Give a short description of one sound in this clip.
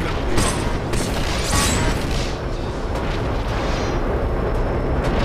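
Game fight sounds of blows and impacts clash loudly.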